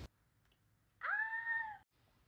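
A young woman exclaims loudly and playfully close by.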